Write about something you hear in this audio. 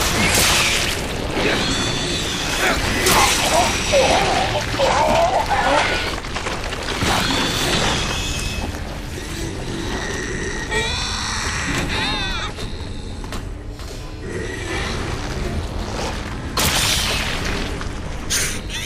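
A monster shrieks and snarls close by.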